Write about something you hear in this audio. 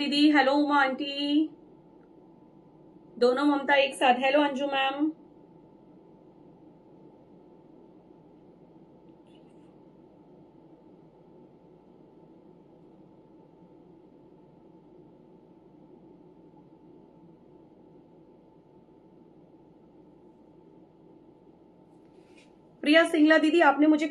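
A woman speaks clearly and close to the microphone.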